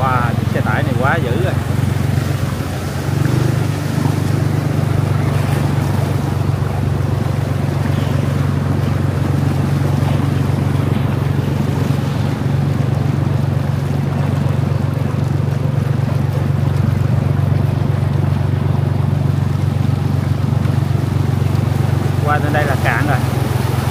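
Floodwater rushes and splashes steadily.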